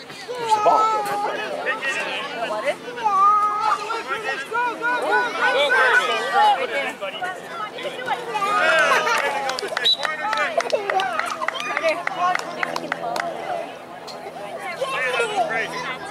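Children shout and call out excitedly outdoors.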